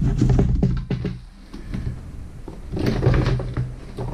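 A metal tray rattles as it slides out of a small oven.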